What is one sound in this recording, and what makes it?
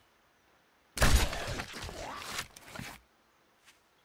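A crossbow fires with a sharp twang and thud.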